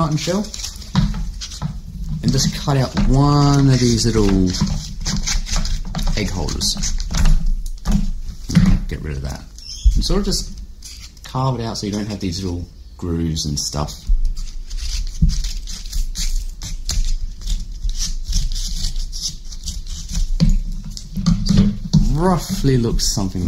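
Cardboard rustles and crinkles as it is handled.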